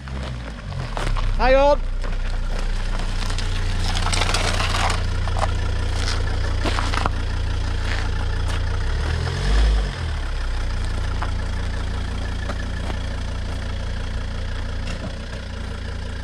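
A car engine idles nearby with a low steady rumble.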